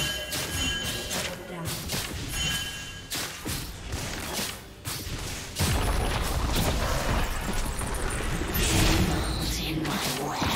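Video game spell effects burst and crackle during a fight.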